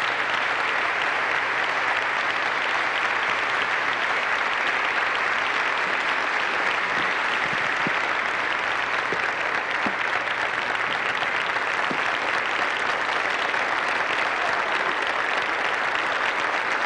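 A large crowd applauds steadily in a large echoing hall.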